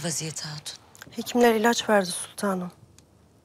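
A woman answers softly, close by.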